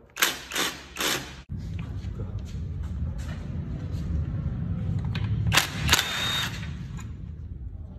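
A cordless impact wrench rattles in short bursts.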